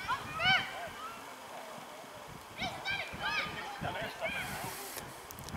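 Children shout and call out excitedly in the distance outdoors.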